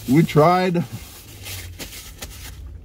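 A middle-aged man blows his nose into a tissue.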